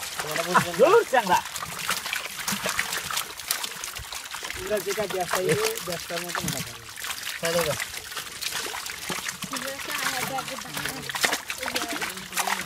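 Wet fish flap and slap against each other in a net.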